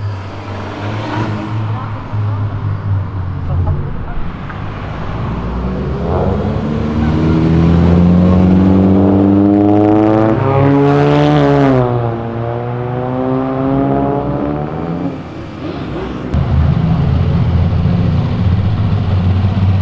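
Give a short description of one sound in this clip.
Car engines rumble as cars drive by on a street.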